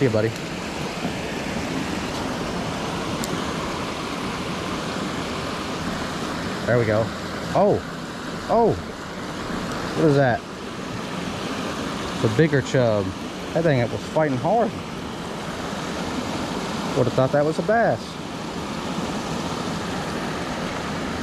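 Water rushes steadily over a low weir nearby.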